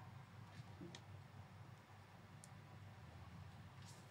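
Plastic clicks and rattles as a man handles a toy.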